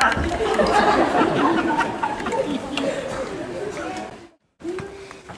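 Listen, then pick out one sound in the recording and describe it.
An audience laughs loudly in a hall.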